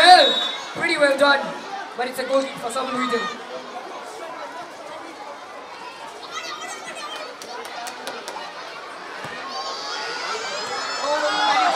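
A crowd of children cheers and shouts outdoors.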